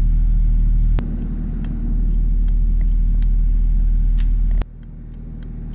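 A grease gun clicks as it is pumped.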